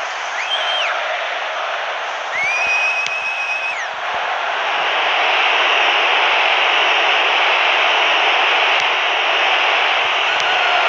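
A stadium crowd roars steadily, swelling louder partway through.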